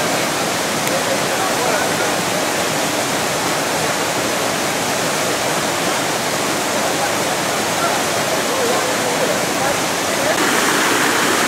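Adult men and women chat quietly nearby.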